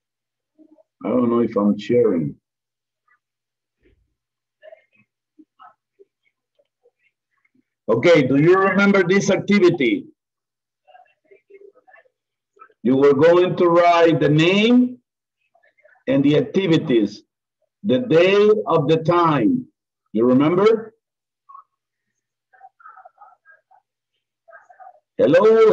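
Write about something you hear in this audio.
A man speaks in bursts over an online call.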